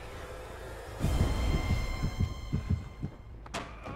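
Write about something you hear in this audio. Footsteps clang on metal stairs.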